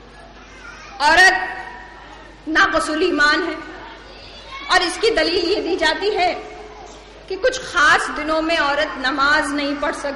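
A woman speaks with emotion through a microphone.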